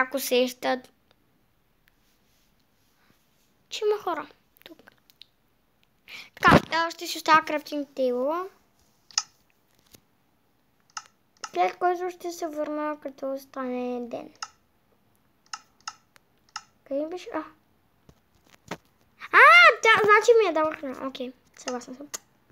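A boy talks with animation, close to a microphone, in bursts with pauses.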